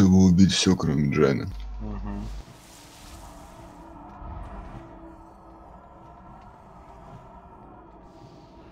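Magic spells crackle and burst in a fantasy battle.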